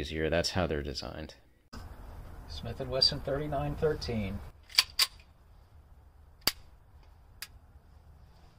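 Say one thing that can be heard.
A handgun's metal parts click as it is handled.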